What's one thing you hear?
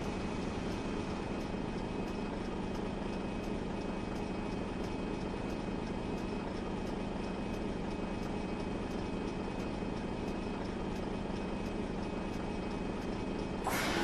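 A turn signal ticks evenly.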